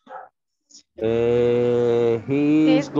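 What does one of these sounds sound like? A young woman sings long, drawn-out notes.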